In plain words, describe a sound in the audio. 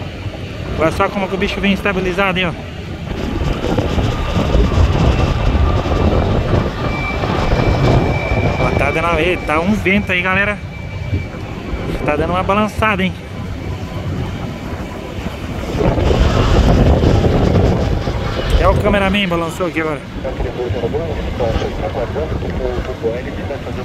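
An airplane's propeller engines drone as it glides in to land.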